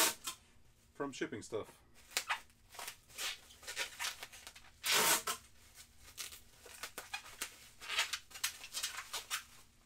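A man rustles and handles paper and small objects close by.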